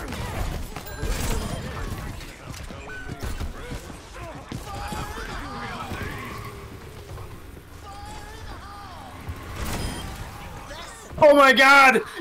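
Gunfire and explosions crack and boom in a video game.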